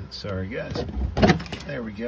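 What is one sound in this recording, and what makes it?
Hard plastic parts knock and click as a hand handles them.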